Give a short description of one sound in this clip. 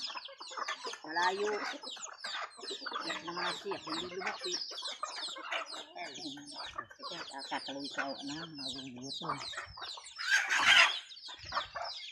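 Chickens cluck softly.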